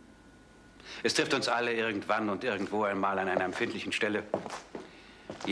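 A middle-aged man speaks firmly and clearly close by.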